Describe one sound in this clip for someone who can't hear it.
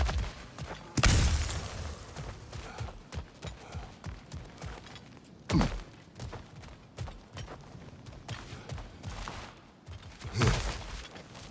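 Heavy thuds land hard on the ground.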